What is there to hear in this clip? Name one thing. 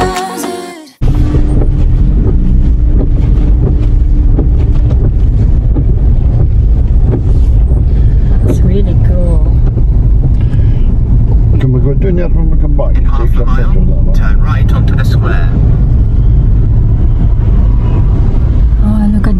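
A car engine hums steadily with a low road rumble from inside the car.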